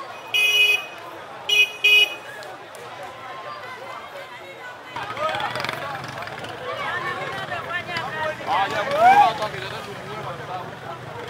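A crowd of men and women talk and shout all around outdoors.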